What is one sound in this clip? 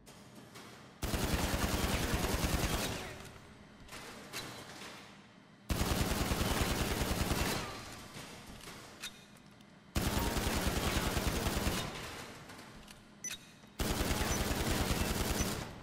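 A pistol fires in rapid bursts of shots, echoing in a large hall.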